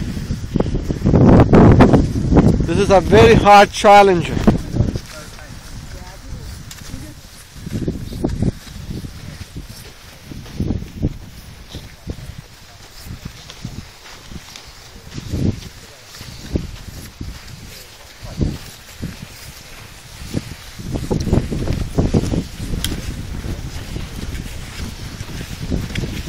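Boots crunch on loose gravel as a group walks.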